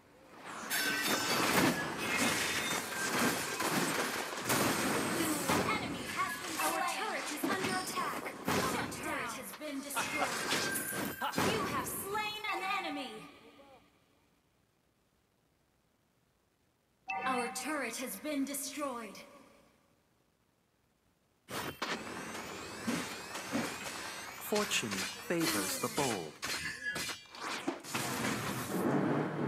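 Magic blasts whoosh and crackle in a fast-paced fight.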